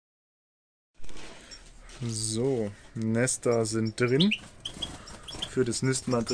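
Small birds chirp and twitter.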